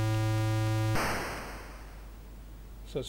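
A video game crash sounds as a burst of hissing noise that fades away.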